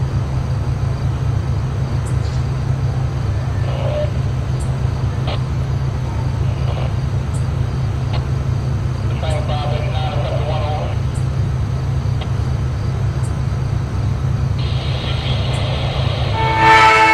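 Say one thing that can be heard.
A train rumbles steadily as it approaches in the distance.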